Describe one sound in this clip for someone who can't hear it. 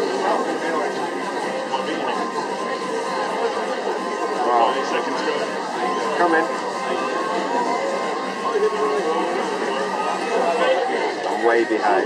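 A crowd of people chatters nearby indoors.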